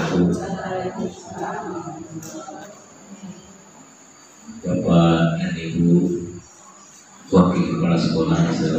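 A woman speaks calmly through a microphone in a room with some echo.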